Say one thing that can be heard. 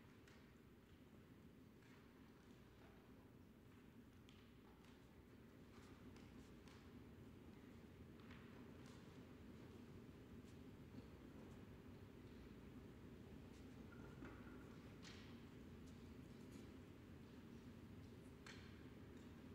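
A grand piano plays softly in a large hall.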